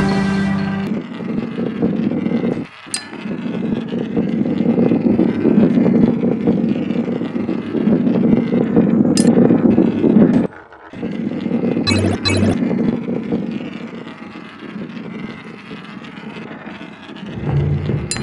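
A ball rolls and rumbles steadily along a wooden track.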